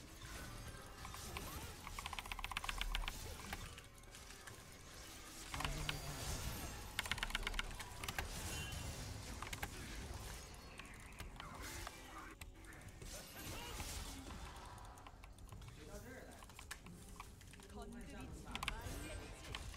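Game spell effects whoosh and crackle in quick bursts.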